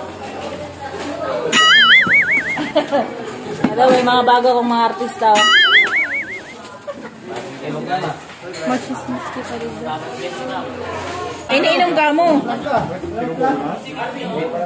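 Several men talk and call out close by.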